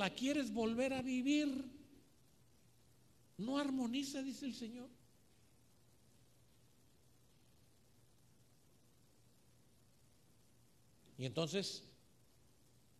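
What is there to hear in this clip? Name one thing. A middle-aged man speaks with feeling through a microphone, with long pauses.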